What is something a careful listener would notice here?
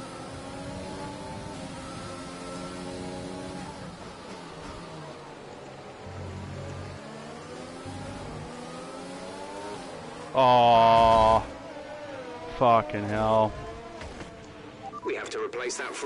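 A racing car engine whines, its pitch climbing and dropping through the gears.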